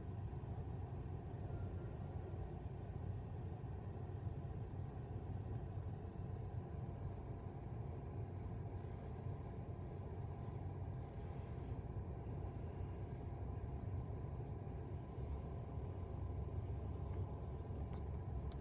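A car rumbles low and steady while driving.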